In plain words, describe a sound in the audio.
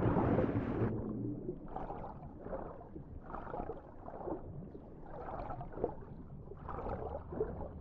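Water swirls and bubbles in muffled underwater surroundings.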